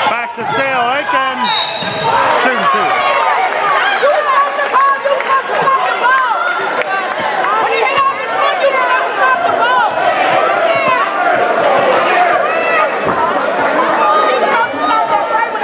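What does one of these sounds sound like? Young players and onlookers shout and call out in a large echoing gym.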